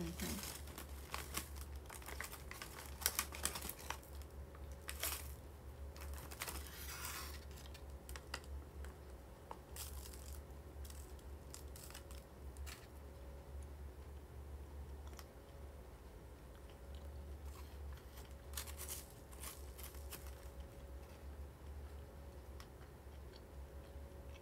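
A young woman chews and slurps food close to a microphone.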